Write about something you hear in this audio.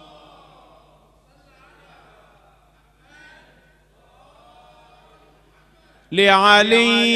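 A man speaks softly into a microphone.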